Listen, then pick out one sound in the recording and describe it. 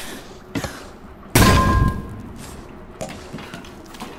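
Hands and feet knock on a wooden ladder while climbing.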